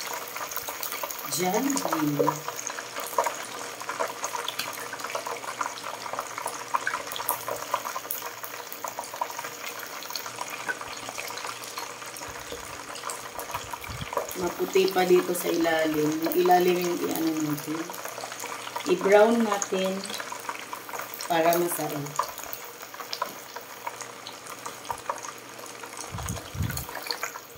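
Oil sizzles and crackles steadily as food deep-fries.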